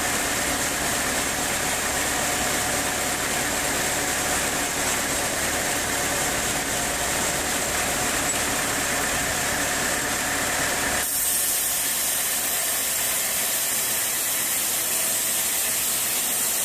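A band saw whines steadily as it cuts through a wooden beam.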